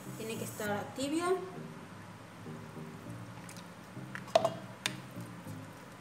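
Liquid pours into a bowl.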